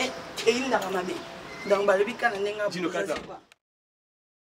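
A woman sings up close.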